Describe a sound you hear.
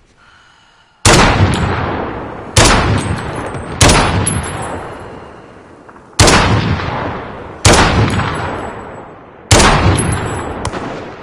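Single loud rifle shots crack and echo slowly away.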